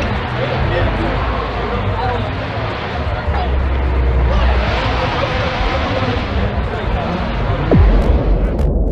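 A crowd of people chatter outdoors at a distance.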